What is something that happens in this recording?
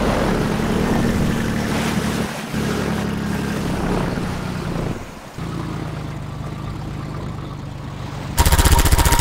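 A boat engine drones loudly and steadily.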